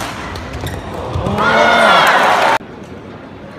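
A crowd cheers loudly in a large echoing hall.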